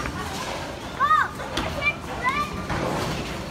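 A young child calls out in a high voice.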